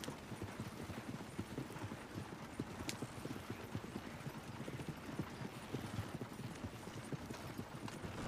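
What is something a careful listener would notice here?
Wooden carriage wheels rumble and creak over the ground.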